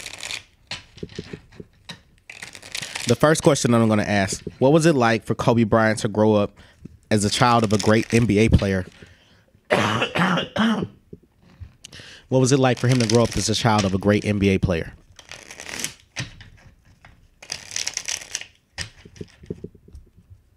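Playing cards are shuffled by hand with a quick riffling flutter.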